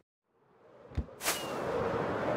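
A firework rocket bursts with a sharp whoosh.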